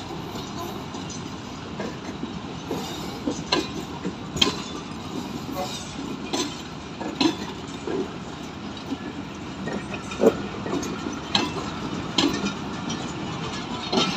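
A passenger train rolls steadily past close by, its wheels rumbling.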